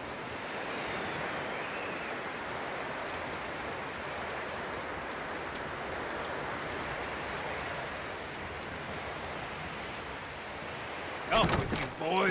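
Wind blows steadily through a snowstorm.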